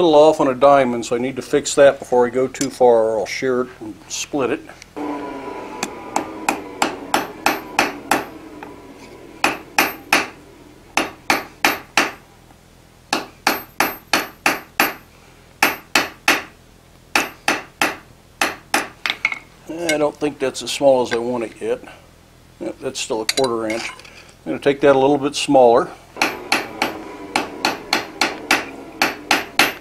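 A hammer strikes hot metal on an anvil in quick, ringing blows.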